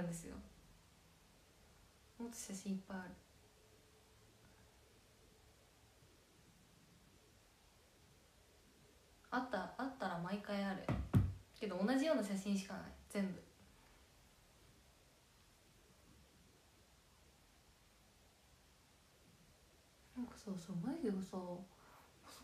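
A young woman speaks softly and close by, in short bursts.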